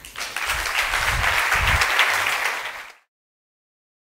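An audience applauds in a large hall, then the clapping stops.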